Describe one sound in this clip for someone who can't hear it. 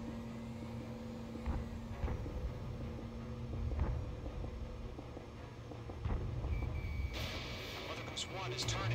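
A jet engine roars steadily with deep rumbling thrust.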